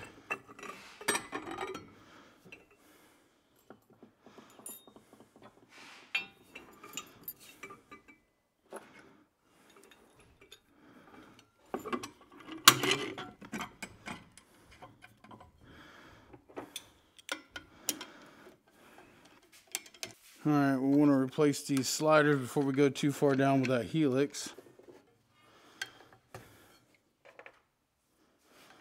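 Metal parts clink and click.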